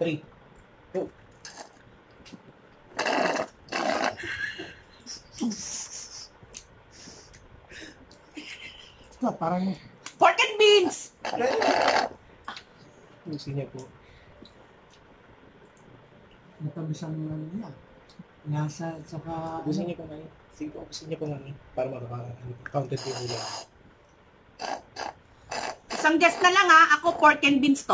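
A man slurps loudly through a straw.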